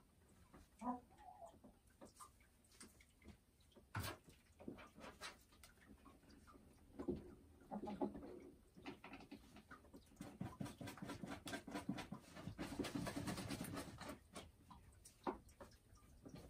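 A hen clucks and croons softly close by.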